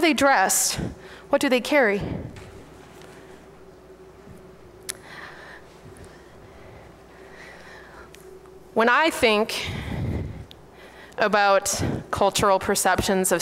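A young woman speaks into a microphone in a hall with a slight echo, pausing between phrases.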